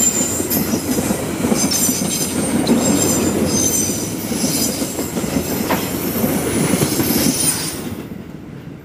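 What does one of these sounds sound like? Train wheels squeal against the rails.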